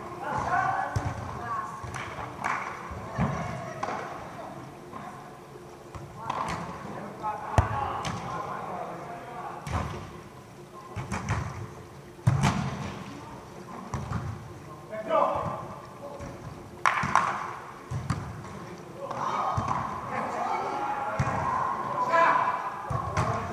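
Men's voices call out in a large echoing hall.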